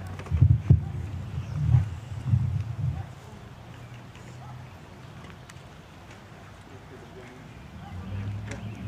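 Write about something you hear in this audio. A group of young people murmur quietly outdoors.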